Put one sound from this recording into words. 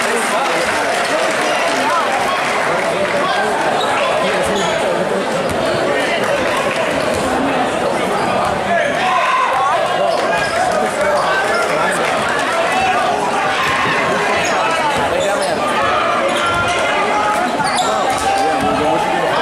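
A large crowd cheers and chatters loudly in an echoing hall.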